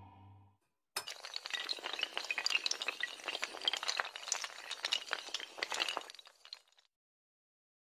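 Dominoes clatter rapidly as they topple in a long chain.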